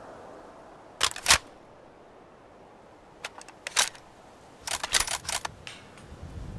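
Metal clicks and clacks as a rifle is handled.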